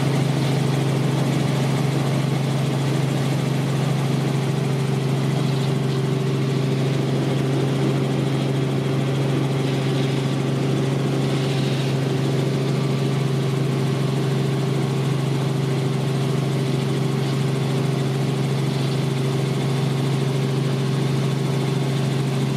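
A helicopter engine and rotor drone loudly and steadily from inside the cabin.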